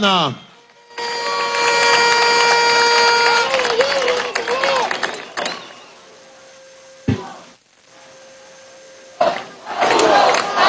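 A large crowd cheers and chants outdoors.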